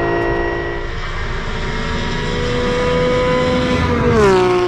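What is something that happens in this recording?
A race car engine approaches with a rising roar and drops in pitch as it speeds past.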